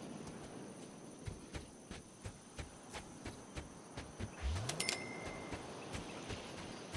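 High heels click quickly on hard ground as a woman runs.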